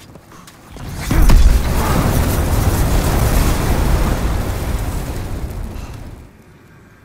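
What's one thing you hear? Flames roar and crackle loudly.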